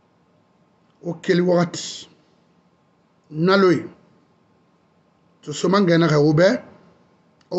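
A man speaks close to a microphone in short, emphatic bursts with pauses between them.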